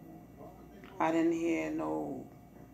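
A woman speaks nearby.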